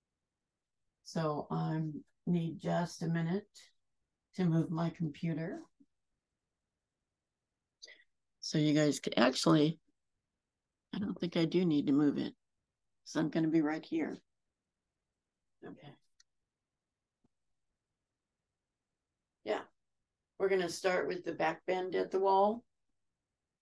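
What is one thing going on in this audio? A woman talks calmly into a nearby microphone, heard as if over an online call.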